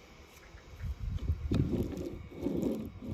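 Toy wheels roll and rub across paper.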